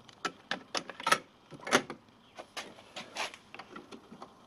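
A cassette door clicks and clatters shut.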